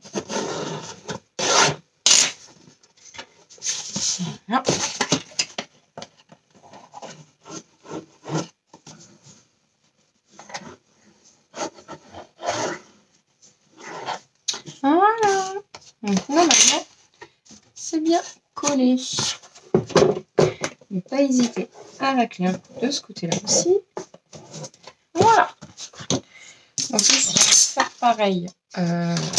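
Hands rub and press paper strips against cardboard with soft rustles.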